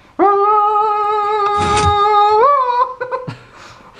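A young man lets out a long, loud, drawn-out yell close to a microphone.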